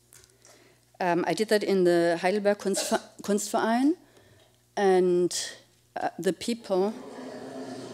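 A woman speaks calmly into a microphone in a large room.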